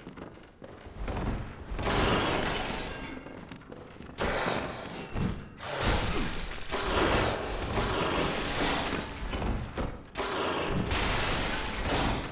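A large beast snarls and growls.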